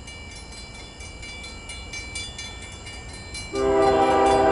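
A railway crossing bell rings rapidly and steadily.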